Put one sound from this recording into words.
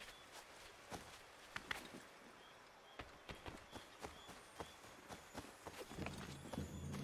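Footsteps crunch over grass and leaves.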